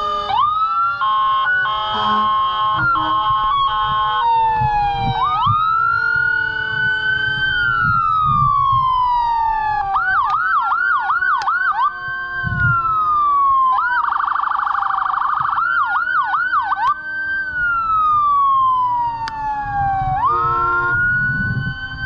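An air horn blasts in short loud blares.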